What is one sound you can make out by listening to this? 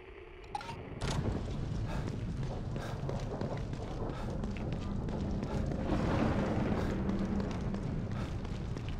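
Footsteps run quickly over wet pavement.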